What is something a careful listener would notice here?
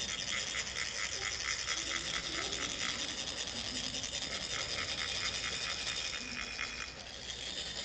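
Metal sand funnels are rubbed together, rasping in a quick, steady rhythm.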